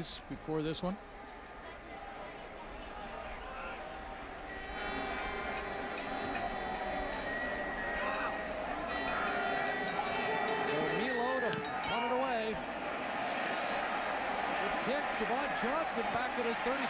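A large stadium crowd cheers and roars, growing louder.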